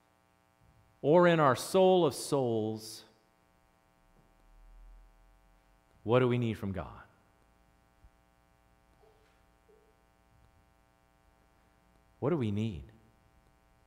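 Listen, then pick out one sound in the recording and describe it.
A middle-aged man speaks with animation through a microphone, in short bursts with pauses.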